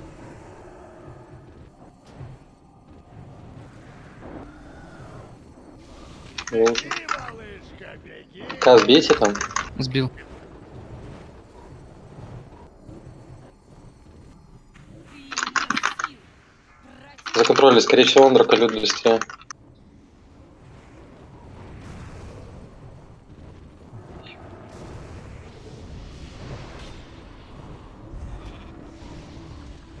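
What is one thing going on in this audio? Spell effects whoosh and crackle in a busy fantasy battle.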